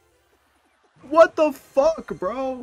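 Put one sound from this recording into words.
A young man shouts excitedly close to a microphone.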